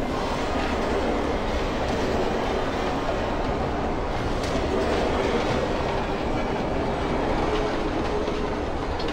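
Tyres screech on a hard floor.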